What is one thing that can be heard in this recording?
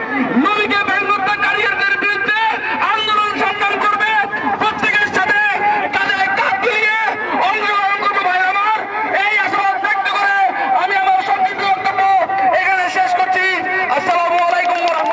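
A man chants loudly into a microphone in a melodic, drawn-out voice.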